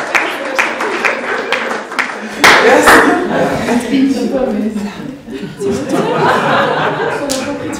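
A young woman laughs happily nearby.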